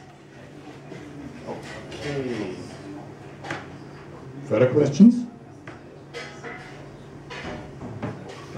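A young man speaks calmly into a microphone, heard through a loudspeaker.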